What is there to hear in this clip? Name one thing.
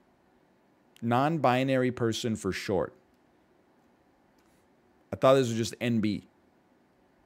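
A man speaks calmly and close into a microphone, in short bursts.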